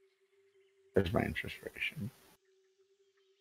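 A man speaks briefly through an online call.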